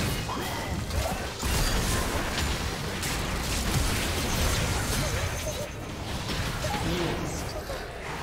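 Game sword and spell impacts clash in quick bursts.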